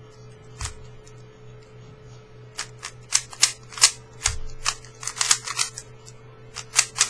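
A puzzle cube's plastic layers click and clack as they are turned quickly.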